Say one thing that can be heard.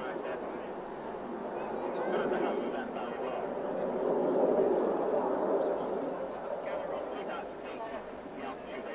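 A formation of jet aircraft roars overhead.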